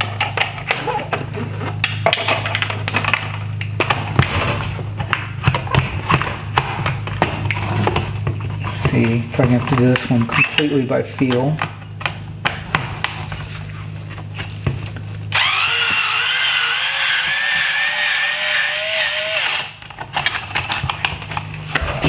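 A screwdriver scrapes and clicks against metal parts.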